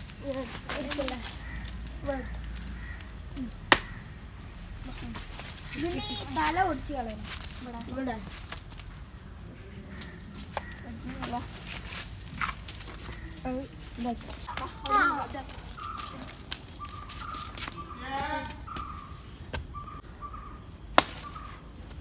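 Leaves rustle as branches are pulled.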